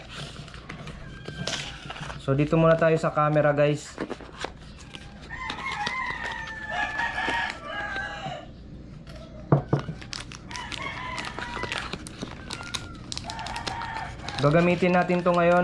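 Cardboard rustles and scrapes as a small box is opened.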